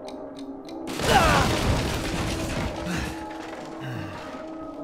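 A loud explosion booms and debris clatters, echoing in a room.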